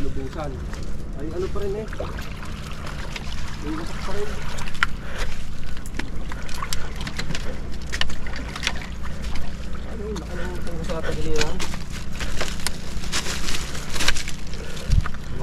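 Footsteps crunch and scrape on loose rocks close by.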